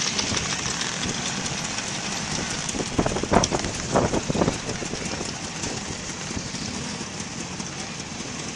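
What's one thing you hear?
Scooter engines idle and putter nearby.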